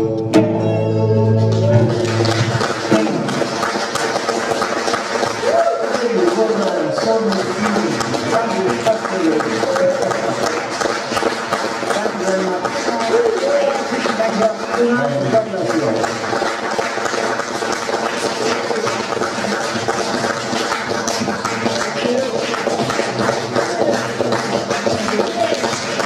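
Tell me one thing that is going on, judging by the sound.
A woman sings into a microphone over loudspeakers.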